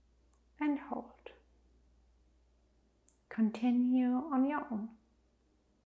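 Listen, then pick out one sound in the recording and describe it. A young woman speaks calmly and softly close to a microphone.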